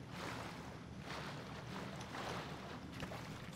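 Water splashes as a swimmer paddles through a pool.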